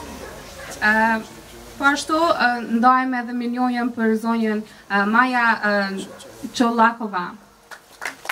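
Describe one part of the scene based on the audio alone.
A young woman speaks clearly into a microphone, heard through loudspeakers.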